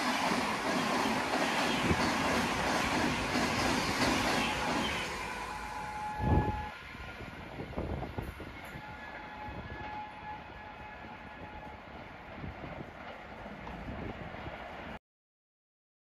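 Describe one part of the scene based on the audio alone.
An express passenger train, hauled by an electric locomotive, rushes past at high speed and fades into the distance.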